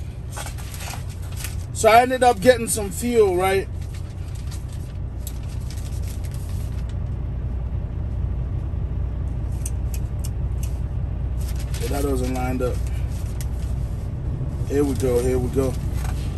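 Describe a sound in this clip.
Paper sheets rustle in a man's hands.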